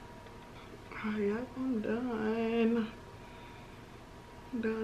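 A young woman speaks calmly, close to the microphone.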